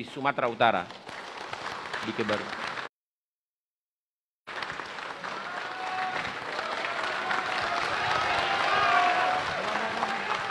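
A crowd claps and applauds steadily.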